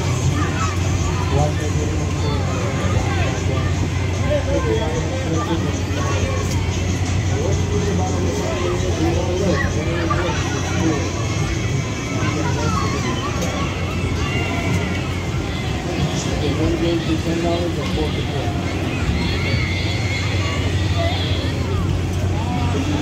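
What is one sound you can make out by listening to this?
A swing ride's motor hums steadily.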